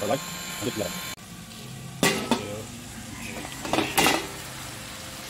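A metal lid clanks as it is lifted off a pan.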